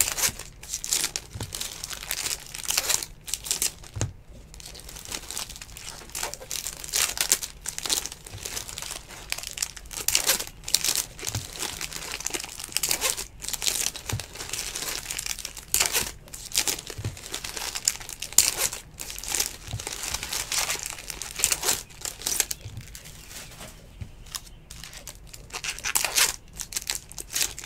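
Trading cards rustle and flick as they are shuffled by hand, close up.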